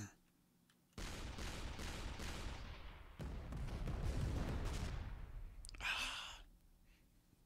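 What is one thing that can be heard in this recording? A game shell whooshes through the air and bursts.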